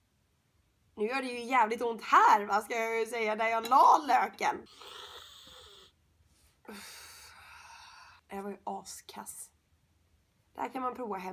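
A young woman talks with animation close by.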